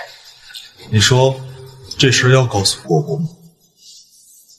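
A young man asks a question calmly, close by.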